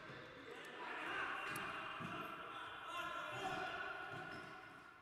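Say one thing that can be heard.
A ball is kicked with a dull thud.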